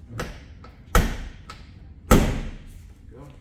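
A van's rear hatch slams shut with loud thuds.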